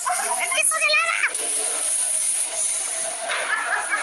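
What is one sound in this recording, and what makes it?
A girl falls onto shopping carts with a rattling crash.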